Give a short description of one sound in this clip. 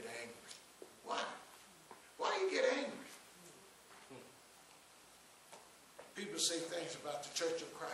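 A man preaches with animation through a microphone in an echoing room.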